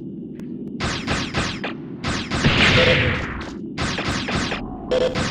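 Rapid blaster shots fire in quick bursts.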